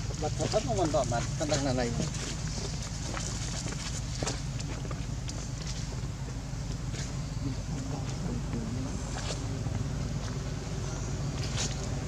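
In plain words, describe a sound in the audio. Dry leaves rustle and crackle as monkeys move about on them.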